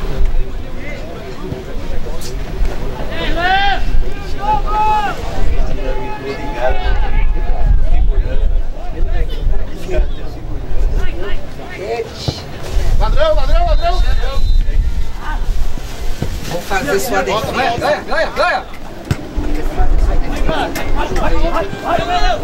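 Young male players shout to each other across an open field.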